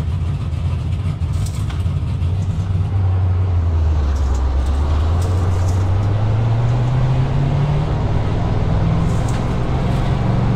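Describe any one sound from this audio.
Other race car engines drone nearby.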